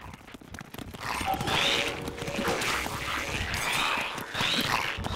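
A game's monsters squeal and clash in a fight.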